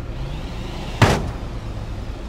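A loud thud rings out as a car lands on a metal ramp.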